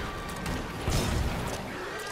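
A fiery explosion bursts with a heavy roar.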